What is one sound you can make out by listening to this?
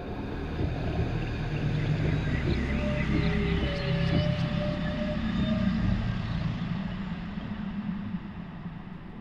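Deep, muffled water rumbles and churns underwater.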